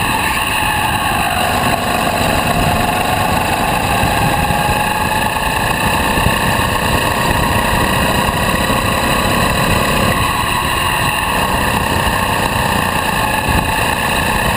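A small kart engine buzzes loudly and steadily, rising and falling in pitch.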